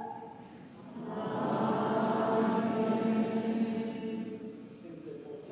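A man sings a slow chant through a microphone in a large echoing hall.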